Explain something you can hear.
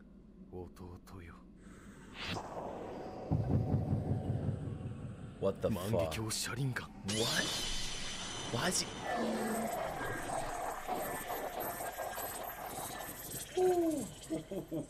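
A young man talks and exclaims with animation close to a microphone.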